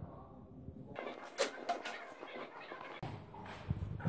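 Barbell plates clank against a rack.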